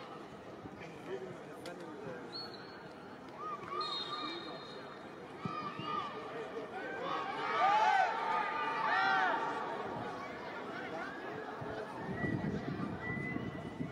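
A crowd of spectators murmurs and calls out in a large open stadium.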